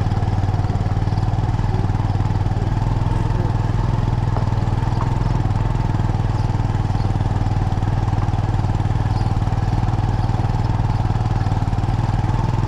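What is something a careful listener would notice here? A car engine hums steadily as the car rolls slowly closer.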